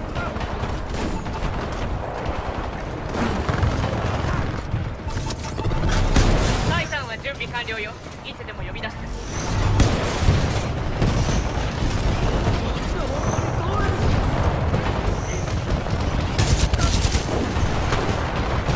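Heavy gunfire and explosions boom and rumble.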